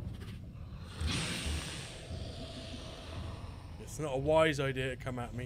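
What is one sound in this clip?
A flamethrower roars in bursts.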